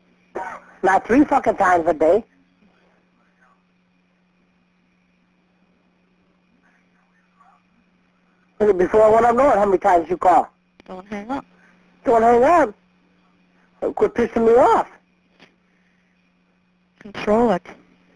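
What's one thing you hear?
A woman speaks in short bursts over a phone line.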